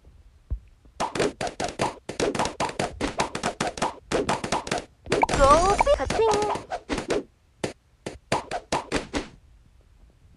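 Cartoon balloons pop in quick, crackling bursts.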